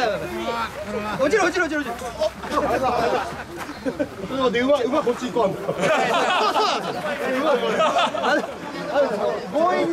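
A crowd of men chant and shout together loudly outdoors.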